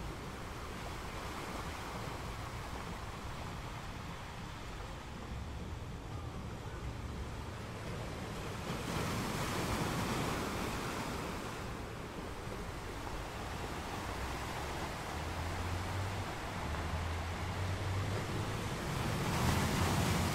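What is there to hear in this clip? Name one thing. Ocean waves crash and break onto rocks nearby.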